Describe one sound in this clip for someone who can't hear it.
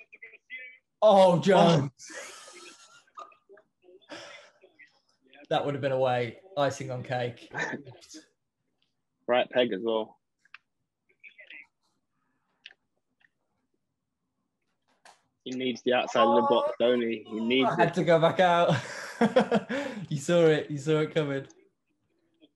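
A young man talks and laughs with animation through a microphone.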